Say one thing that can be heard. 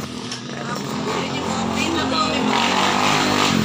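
A motorbike engine drones past in the street.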